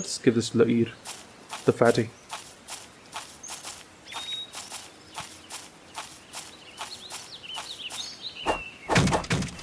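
Armoured footsteps thud on dirt at a run.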